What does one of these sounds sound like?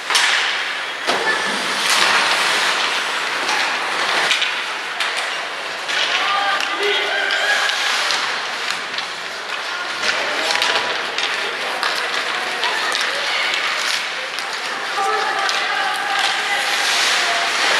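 Hockey skates scrape and hiss on ice.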